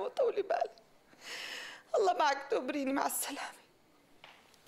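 A woman sobs and speaks tearfully into a phone nearby.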